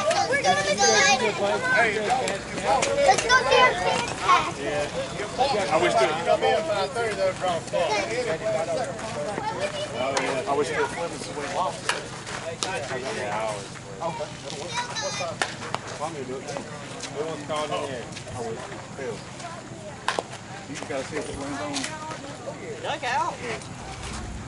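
Men talk and call out nearby, outdoors.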